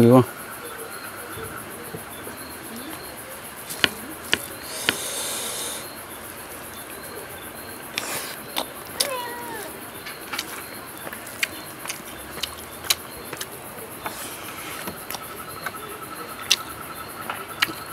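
A man chews food and smacks his lips loudly close by.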